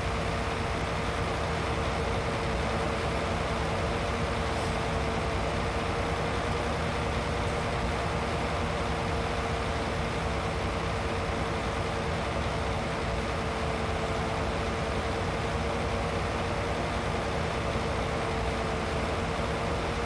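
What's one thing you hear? A mower clatters as it cuts grass.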